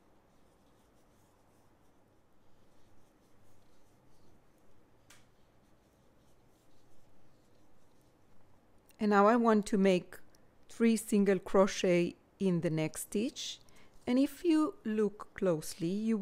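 A crochet hook softly rustles through yarn.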